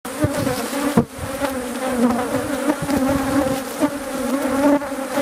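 A wooden hive lid knocks and scrapes as it is lifted.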